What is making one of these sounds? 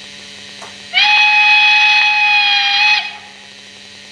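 A steam locomotive whistle blows loudly.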